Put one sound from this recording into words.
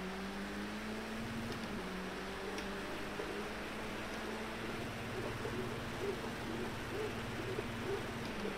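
Rain hisses on the track under the tyres.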